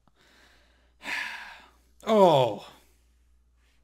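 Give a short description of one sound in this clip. A young man sighs and groans heavily.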